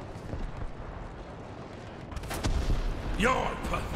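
A tank cannon fires with a loud boom.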